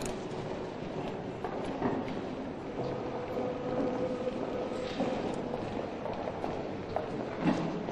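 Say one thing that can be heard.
A crowd murmurs quietly in a large echoing hall.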